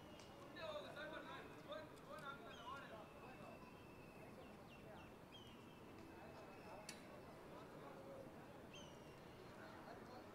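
Young men call out to each other across an open outdoor field.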